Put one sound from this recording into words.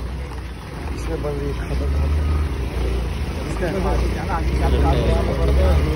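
Scooter engines hum as they ride slowly past.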